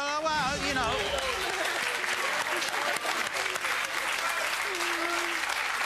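An audience applauds loudly in a large studio.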